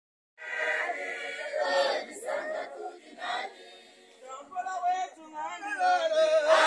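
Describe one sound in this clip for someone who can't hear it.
A crowd of young men and women sings loudly together.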